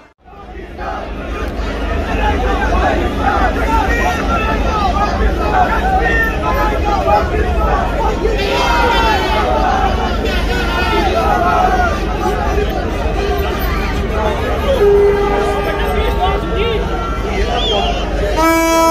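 A large crowd of men cheers and chants loudly outdoors.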